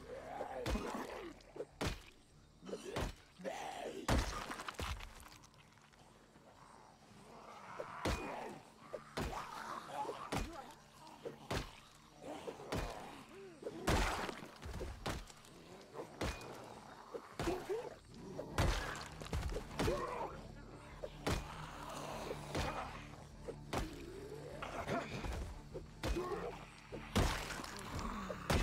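Heavy blows thud again and again as a fighter strikes attackers.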